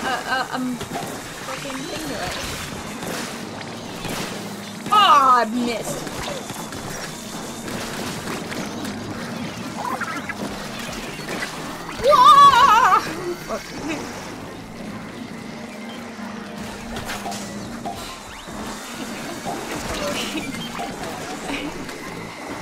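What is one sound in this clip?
A cartoonish ink blaster fires in quick bursts with wet splattering.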